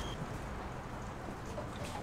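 Oil pours with a steady trickle into a pan.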